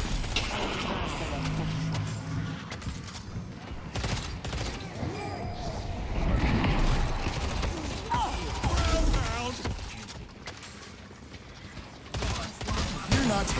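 Energy weapons zap and crackle in rapid bursts.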